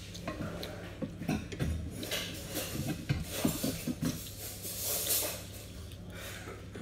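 A young woman chews food close to the microphone.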